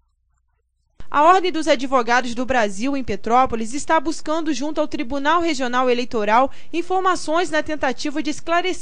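A man speaks with animation through a loudspeaker in a large hall.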